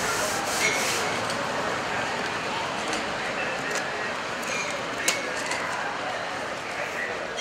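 Paper rustles as a notice is pressed against a metal shutter.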